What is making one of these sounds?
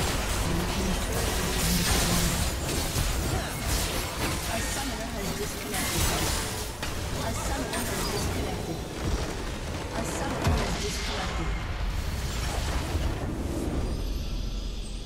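Game spell effects and weapon hits clash rapidly in a busy fight.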